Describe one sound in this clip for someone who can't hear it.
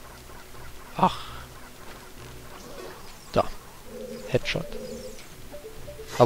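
A sword swishes and strikes in a video game.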